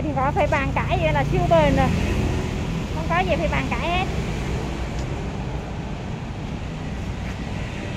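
Motorbikes and cars pass by on a nearby road.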